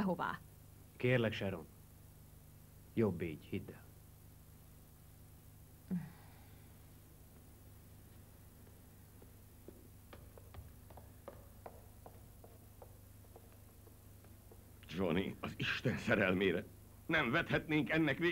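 A man speaks calmly and quietly nearby.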